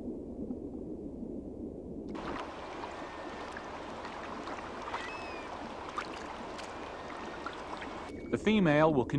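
Water ripples and laps softly.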